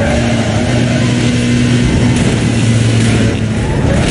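Tyres screech as a car drifts through a corner.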